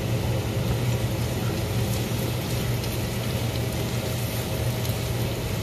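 A utensil scrapes and taps in a pan.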